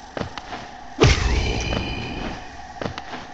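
A bright chime rings out as coins are collected.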